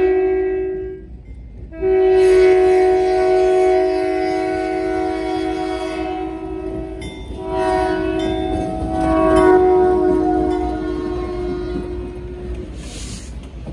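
A locomotive horn blasts loudly in long repeated blows.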